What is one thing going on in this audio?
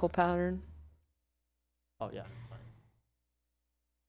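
A middle-aged woman speaks through a microphone.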